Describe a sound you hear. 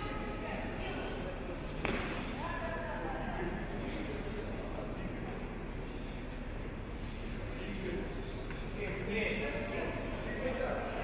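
Bare feet shuffle and thump on a padded mat.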